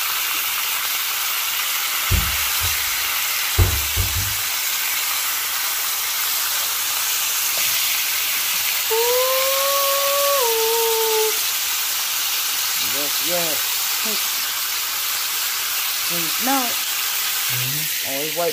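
Meat sizzles and crackles in a hot frying pan.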